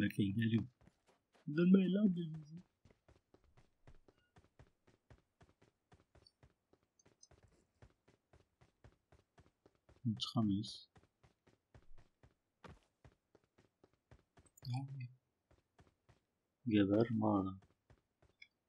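A young man talks in short bursts close to a microphone.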